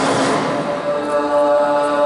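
A ball thuds on the floor.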